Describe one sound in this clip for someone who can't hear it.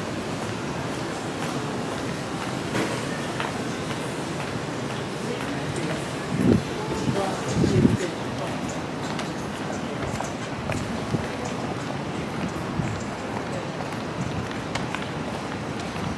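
A steady murmur of distant voices and city hum fills the air.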